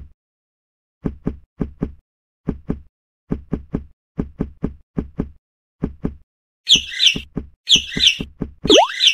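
A video game's stomping sound effects thud quickly in pairs.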